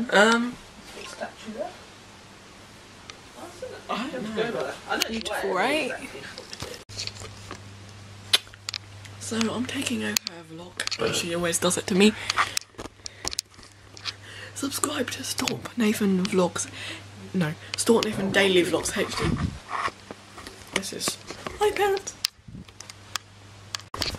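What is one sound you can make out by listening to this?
A teenage boy talks casually and close up.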